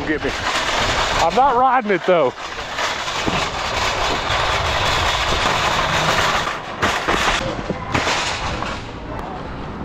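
A shopping cart rattles as it rolls over pavement.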